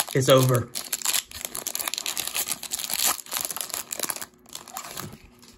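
A foil wrapper rips open.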